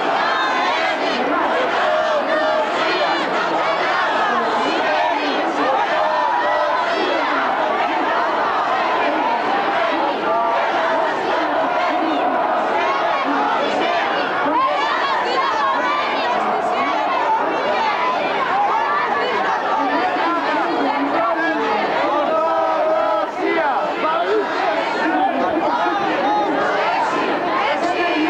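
A large crowd of men and women talks and murmurs all around, close by and outdoors.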